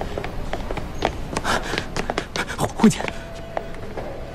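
Footsteps click on a hard floor.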